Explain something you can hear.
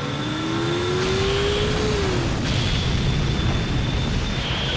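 A rocket motor roars steadily.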